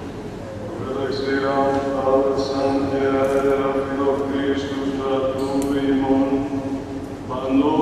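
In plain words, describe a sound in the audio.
An elderly man chants slowly in a deep voice through a microphone, echoing in a large hall.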